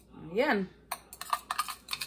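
A spoon clinks against a bowl as it stirs.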